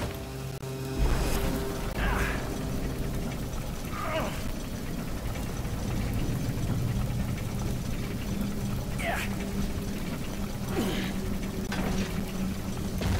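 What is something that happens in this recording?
A heavy stone door grinds slowly open.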